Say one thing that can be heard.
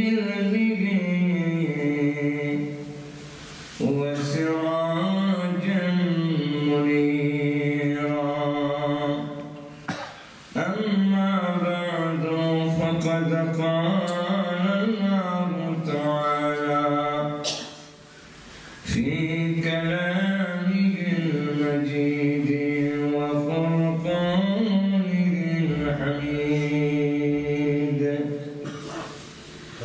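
A man chants melodically in a long, sustained voice through a microphone, in a reverberant hall.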